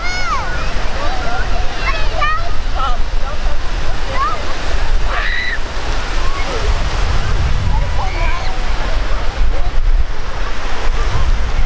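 Wind blows across an open beach.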